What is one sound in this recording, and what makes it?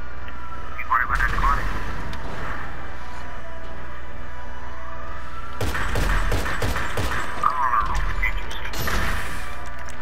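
A rifle fires sharp, booming shots.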